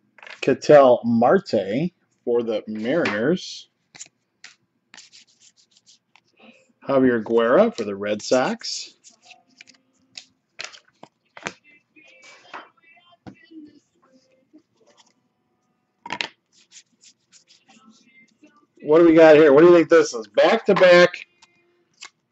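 Trading cards slide and flick against each other in a hand.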